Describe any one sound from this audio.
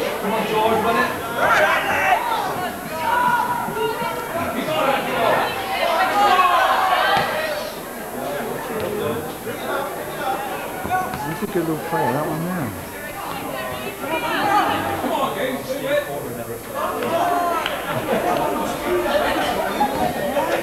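Men nearby talk and call out loudly, outdoors.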